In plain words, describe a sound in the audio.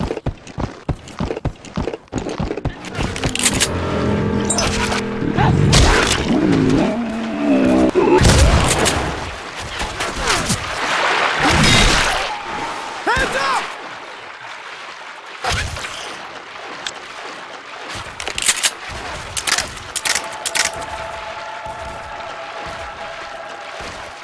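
Footsteps splash while wading through shallow water.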